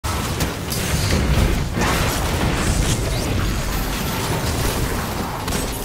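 Loud explosions and energy blasts boom.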